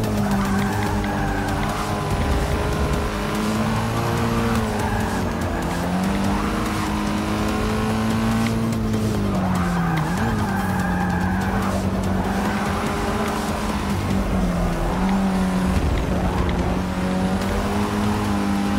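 A car engine roars steadily, rising and dropping in pitch as it shifts gears.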